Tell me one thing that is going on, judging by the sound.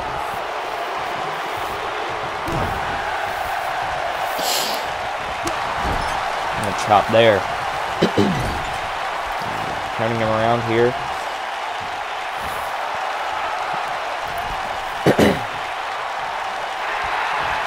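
Wrestlers' bodies thud against each other and the ring.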